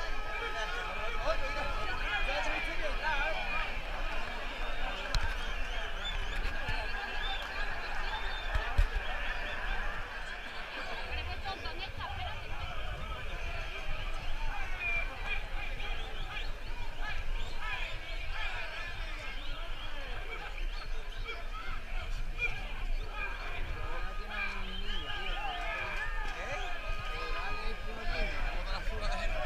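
A large crowd chatters and shouts excitedly outdoors.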